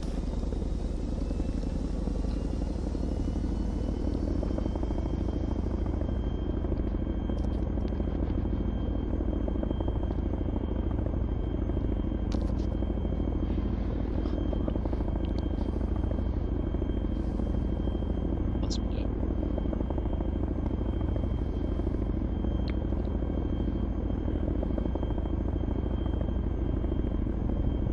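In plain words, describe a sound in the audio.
An aircraft engine drones steadily in a deep, even rumble.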